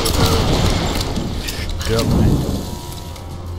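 An explosion booms and roars loudly.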